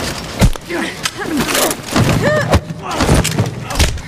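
Heavy blows thud in a close scuffle.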